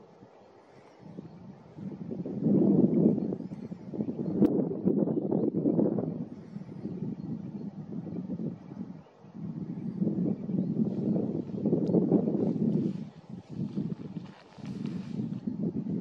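Wind gusts outdoors, rumbling in bursts.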